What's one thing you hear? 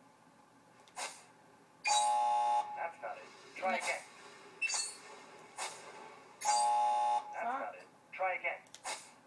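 Video game sound effects and electronic tones play from a television loudspeaker.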